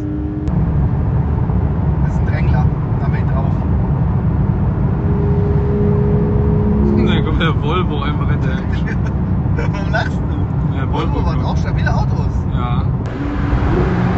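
A car engine drones loudly while driving fast on a road.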